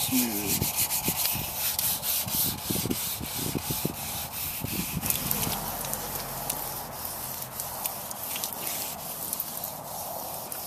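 Sandpaper scrubs rhythmically against a metal panel.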